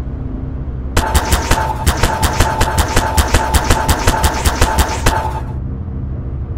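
A sci-fi tool gun zaps rapidly over and over.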